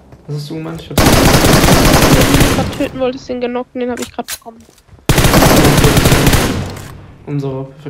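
A rifle fires rapid bursts of shots.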